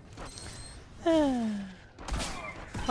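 A lightsaber hums and swooshes through the air.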